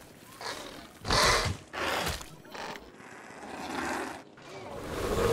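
A large winged creature shrieks in sharp bursts.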